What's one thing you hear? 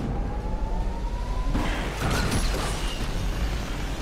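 A loud crash bursts with scattering debris.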